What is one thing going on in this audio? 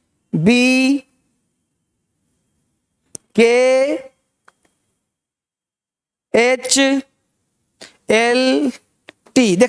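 A man speaks clearly and loudly into a microphone in short, drawn-out bursts with pauses.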